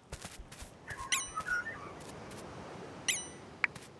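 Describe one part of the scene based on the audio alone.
A bright game chime rings.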